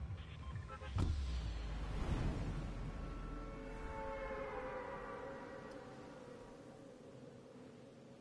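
Wind rushes loudly past a falling skydiver and slowly fades.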